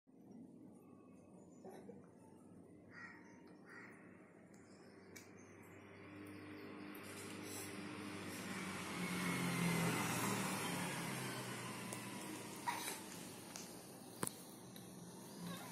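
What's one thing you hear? A baby coos and babbles softly close by.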